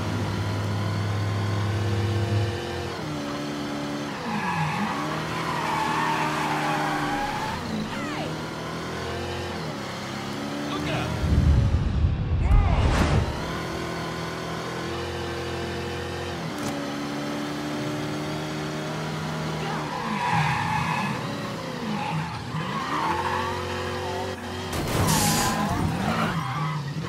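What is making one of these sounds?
A car engine revs up and down as it drives.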